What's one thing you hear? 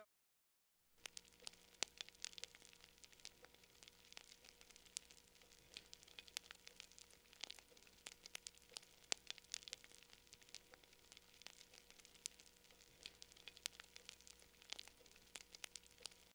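A wood fire crackles and pops up close.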